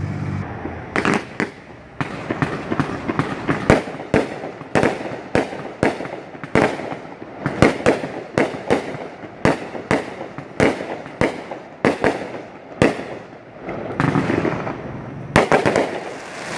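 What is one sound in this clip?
Fireworks bang and pop rapidly, one after another.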